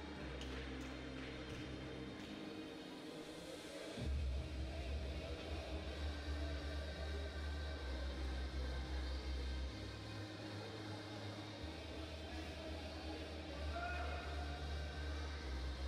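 Swimmers splash through the water in a large echoing hall.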